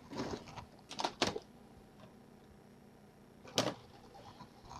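Hard plastic clicks and knocks as a hand handles game cartridges.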